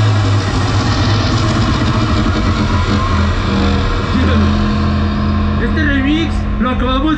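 Loud electronic dance music with heavy bass thumps from a big sound system outdoors.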